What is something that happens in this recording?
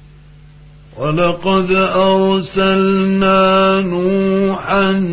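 A man chants loudly in a long, drawn-out melodic voice through a microphone.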